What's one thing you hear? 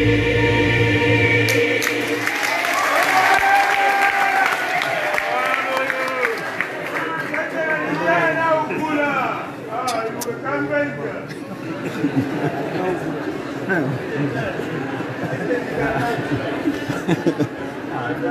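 A large choir sings together in an echoing hall.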